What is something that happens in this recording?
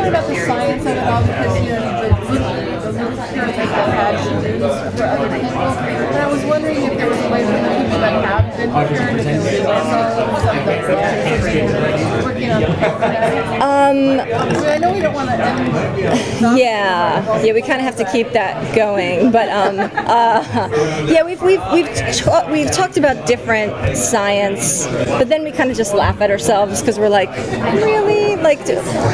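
Many people chatter in the background of a busy room.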